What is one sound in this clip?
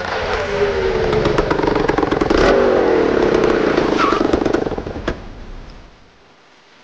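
A motorcycle engine roars loudly as it rides up close and then stops.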